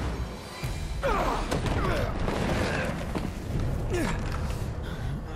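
A young man groans in pain.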